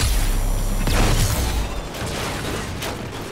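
An explosion booms loudly and rumbles.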